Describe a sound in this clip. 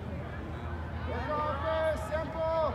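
Spectators cheer and shout loudly.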